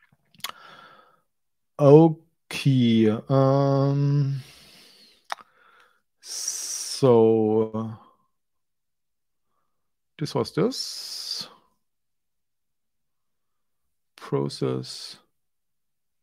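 A man speaks close to a microphone in a calm, conversational way, with pauses.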